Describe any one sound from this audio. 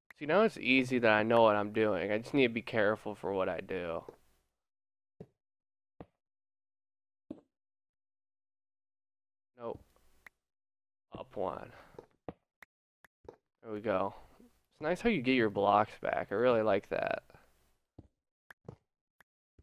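A video game block breaks with a short crunching sound.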